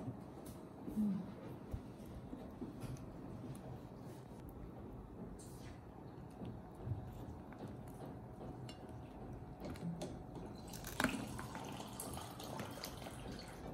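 Fingers rustle and tap against crab shell.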